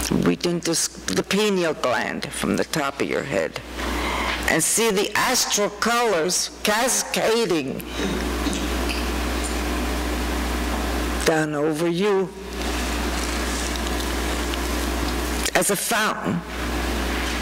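A woman sings through a microphone in a room with echo.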